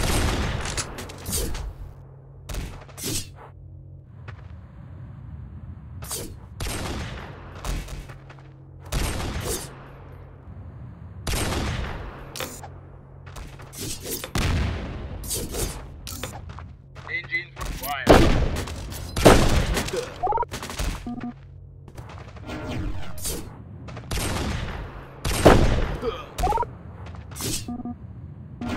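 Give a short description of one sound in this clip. Game gunshots crack over and over, each echoing away.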